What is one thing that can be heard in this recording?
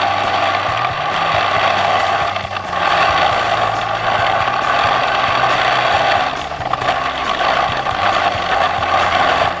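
A snowmobile engine roars loudly close by, rising and dipping as the throttle changes.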